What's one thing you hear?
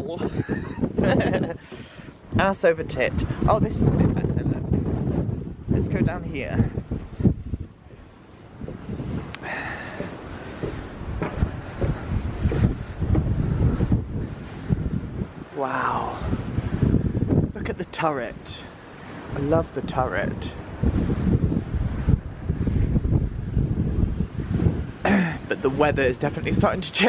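Strong wind gusts and rumbles outdoors.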